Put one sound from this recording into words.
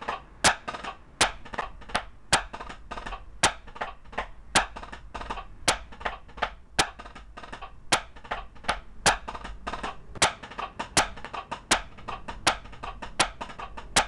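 Drumsticks strike a practice pad in a quick, steady pattern of soft taps and sharp accents.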